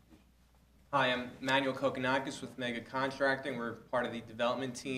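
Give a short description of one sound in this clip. A younger man speaks steadily into a microphone.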